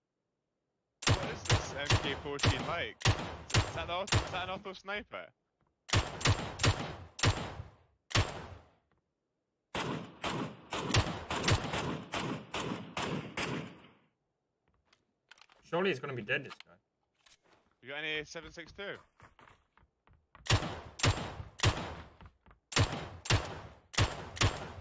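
Rifle shots ring out in rapid bursts.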